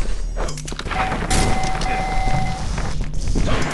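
An electric weapon crackles and hums as it fires.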